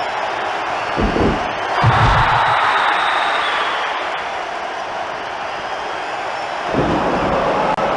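Heavy bodies thump hard against a wrestling mat.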